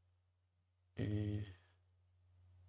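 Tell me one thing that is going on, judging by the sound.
A man speaks briefly and loudly into a close microphone.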